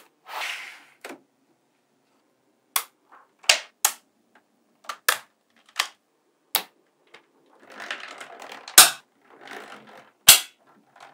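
Small steel magnetic balls rattle as a hand presses over them.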